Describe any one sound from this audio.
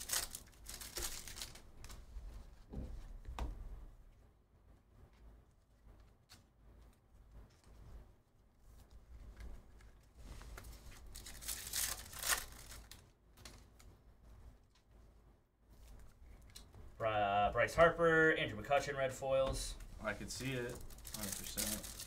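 Trading cards rustle and slide as they are shuffled by hand.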